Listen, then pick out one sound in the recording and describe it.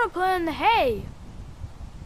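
A young child speaks eagerly up close.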